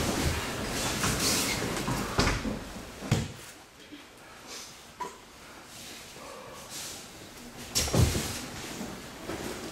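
Bodies thud heavily onto a padded mat.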